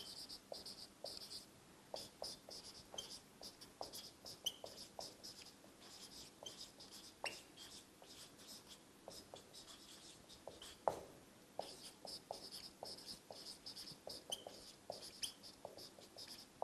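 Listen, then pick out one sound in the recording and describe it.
A marker squeaks and taps across a whiteboard in short strokes.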